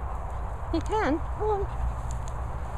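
A dog whines briefly in high, rising and falling yelps.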